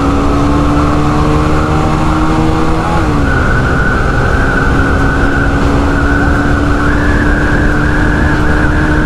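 A motorcycle engine roars steadily at speed, dipping briefly in pitch at a gear change.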